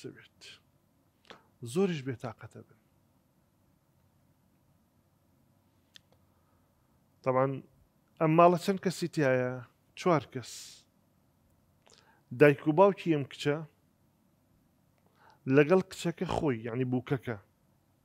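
A middle-aged man speaks with feeling into a close microphone, in bursts with long pauses.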